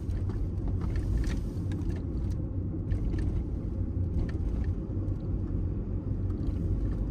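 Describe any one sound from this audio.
A car's tyres rumble on an asphalt road, heard from inside the car.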